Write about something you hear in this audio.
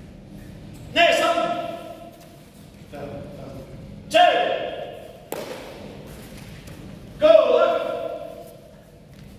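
A group of children shout together in sharp bursts in a large echoing hall.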